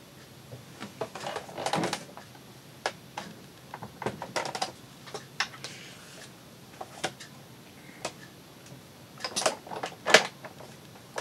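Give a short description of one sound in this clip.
Plastic plates tap and clatter as they are set down.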